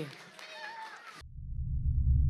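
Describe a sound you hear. An audience chatters quietly in a large room.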